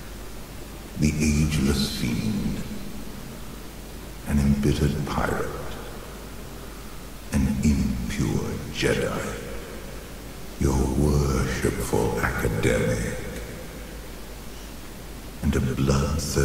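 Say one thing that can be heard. A man speaks close to a microphone in short bursts.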